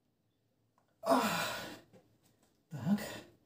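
A man grunts and breathes out hard with effort, close by.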